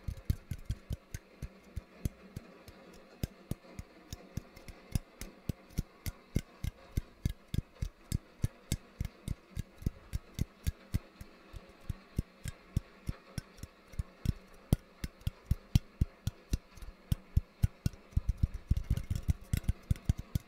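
Fingers tap and click very close to a microphone in a quick, uneven rhythm.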